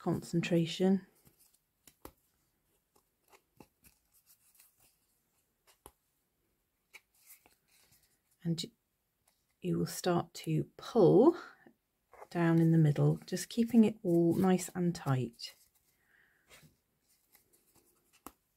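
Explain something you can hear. Thread rustles softly as it is wound around a foam disc.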